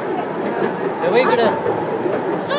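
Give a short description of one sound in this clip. Children talk and call out nearby.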